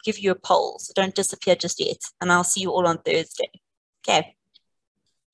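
A woman speaks calmly over an online call, close to the microphone.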